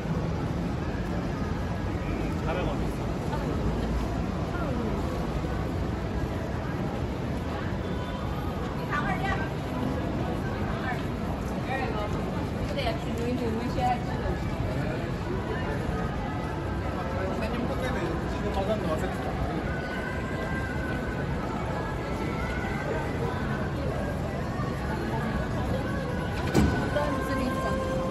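Footsteps tap on paving stones.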